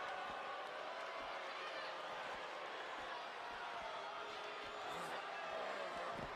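A crowd cheers loudly and steadily.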